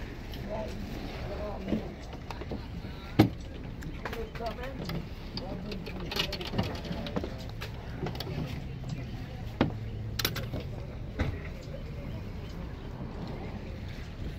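Wooden drawers slide and knock as they are pulled open and pushed shut.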